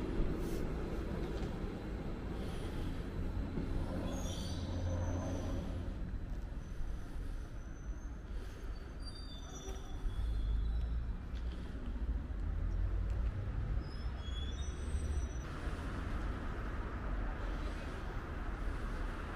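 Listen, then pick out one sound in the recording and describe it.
A train rumbles low and steady nearby, outdoors.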